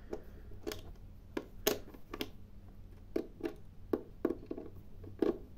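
A screwdriver clicks and scrapes against a plastic casing.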